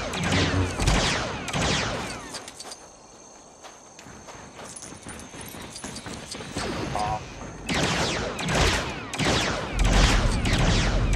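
Blasters fire in rapid bursts of zapping shots.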